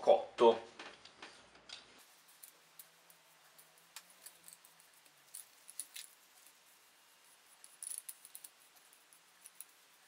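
A cloth rubs and taps against a wooden handle.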